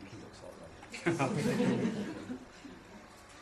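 A crowd of guests laughs in a room.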